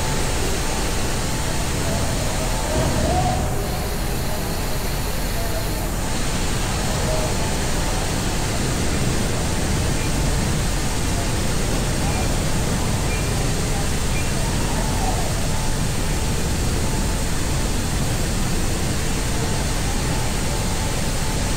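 A smoke machine hisses and roars steadily in an echoing tunnel.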